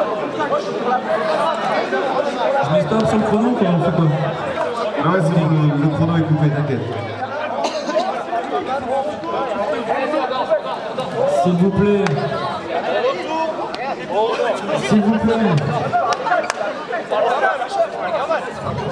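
A crowd of young people chatters loudly in a large echoing hall.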